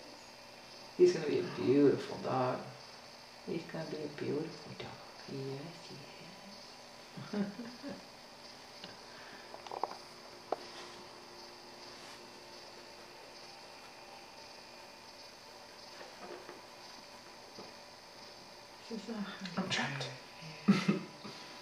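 A man speaks softly, close by.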